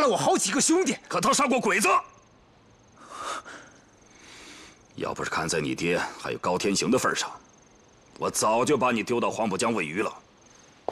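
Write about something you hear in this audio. A middle-aged man speaks in a low, stern voice.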